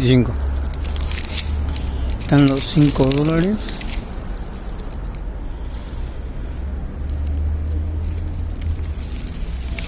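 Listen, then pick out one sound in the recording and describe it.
A paper receipt rustles in a hand.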